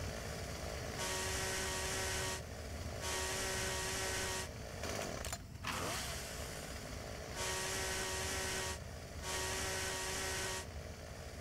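A chainsaw revs in loud, repeated bursts.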